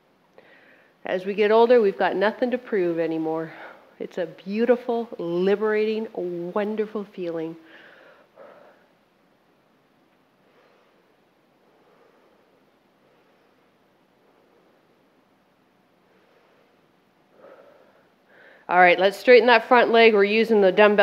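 A woman speaks clearly and with energy into a close microphone.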